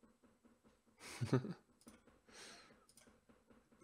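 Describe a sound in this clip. A young man laughs briefly.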